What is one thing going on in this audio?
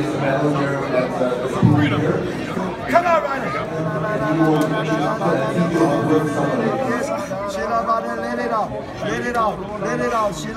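A man cries out with joy.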